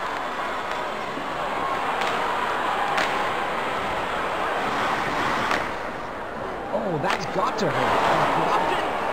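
A crowd roars steadily in a large echoing arena.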